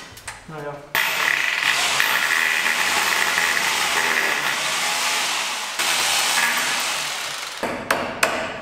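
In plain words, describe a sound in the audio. A power drill whirs steadily.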